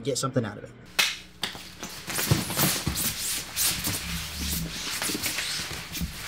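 Bodies shift and thump on a padded mat.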